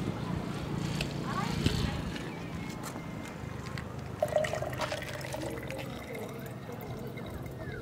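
A plastic lid clatters against a plastic bucket.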